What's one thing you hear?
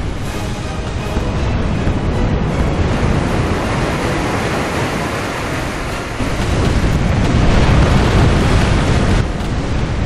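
Cannons boom in rapid volleys.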